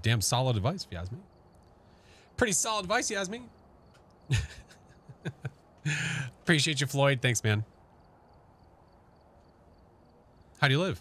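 A man talks with animation into a close microphone, in short bursts.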